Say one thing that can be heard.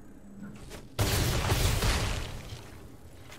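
A loud magical blast whooshes and crashes.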